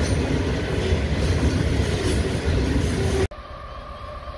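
Loaded freight wagons rumble and clatter along the rails.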